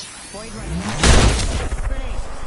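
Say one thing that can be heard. A loud blast booms and rings out.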